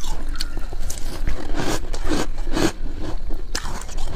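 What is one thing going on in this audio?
A young woman crunches ice in her mouth up close.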